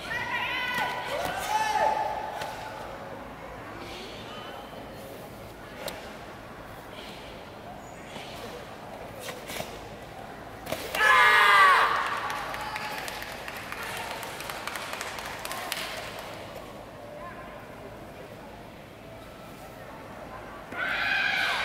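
Young men shout sharply together in a large echoing hall.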